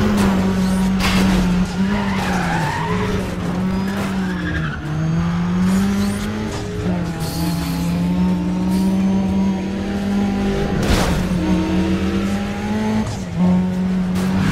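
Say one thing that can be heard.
Cars crash and scrape against each other with loud bangs.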